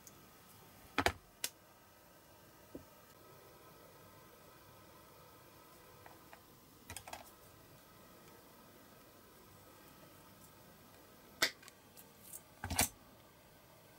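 Pliers snip thin wire with sharp clicks.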